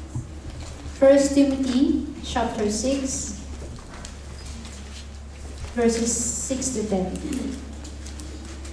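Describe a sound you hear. A young woman speaks softly into a microphone, heard through loudspeakers.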